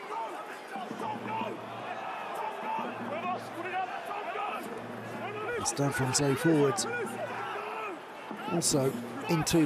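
Players collide and grapple with dull thuds in a tackle.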